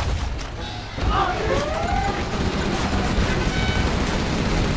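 Gunfire crackles and booms in a battle.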